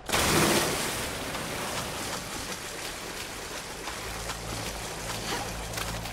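Water sloshes steadily with each wading step.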